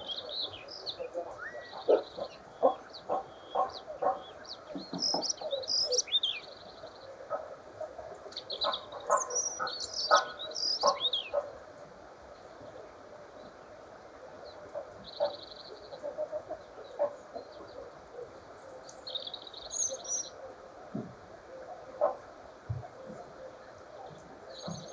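A small bird chirps and twitters nearby, outdoors.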